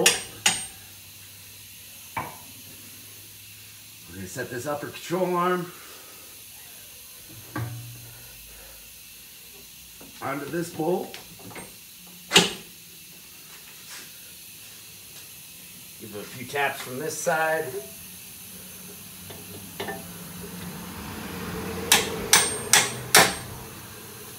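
Metal tools clank against car parts.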